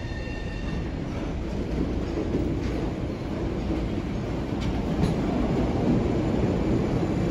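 A subway train rumbles into an echoing underground station and grows louder.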